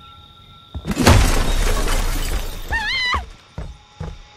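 A wooden door is smashed with loud crashing and splintering.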